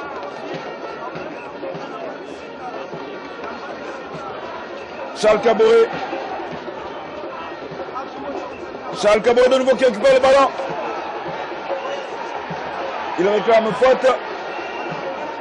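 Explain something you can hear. A large crowd murmurs and cheers steadily in an open stadium.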